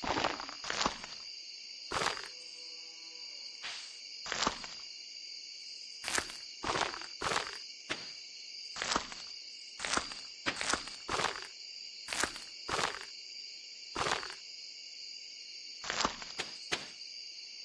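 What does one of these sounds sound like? A hoe thuds into soil again and again in short, sharp strikes.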